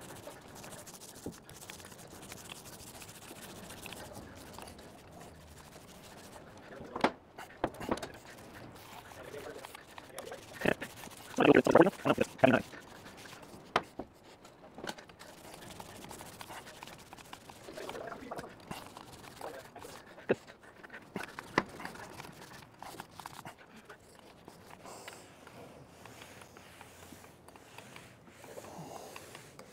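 A paint roller rolls and rubs softly over a metal surface.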